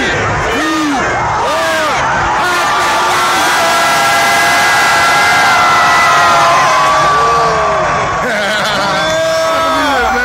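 A large crowd cheers and shouts loudly outdoors.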